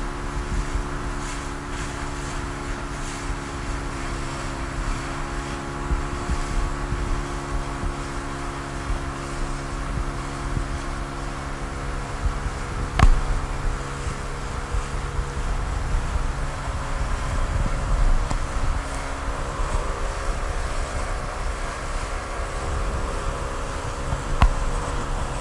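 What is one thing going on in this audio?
A 9.9 hp outboard motor drones at speed.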